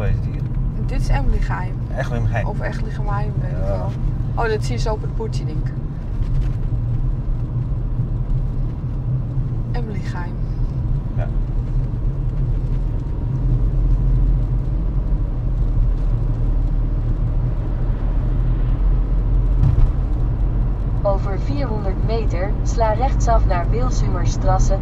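A car engine hums steadily with road noise from inside the car.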